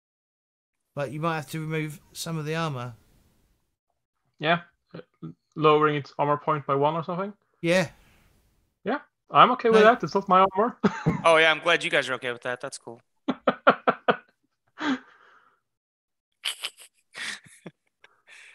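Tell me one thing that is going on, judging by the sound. Several men talk with animation over an online call.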